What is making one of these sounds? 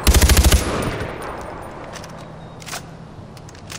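A rifle magazine clicks out during a reload.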